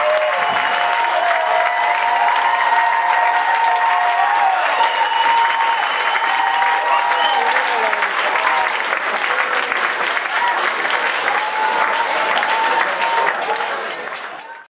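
People in a crowd whistle loudly.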